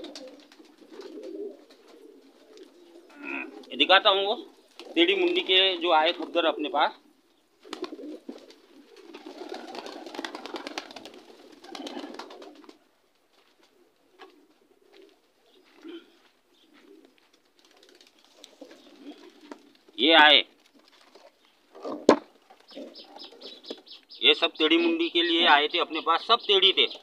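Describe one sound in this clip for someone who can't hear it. Pigeons coo softly.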